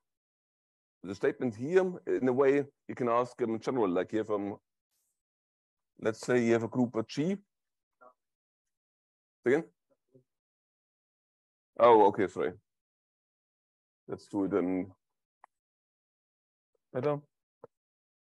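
A man lectures calmly through a microphone, in short bursts with pauses.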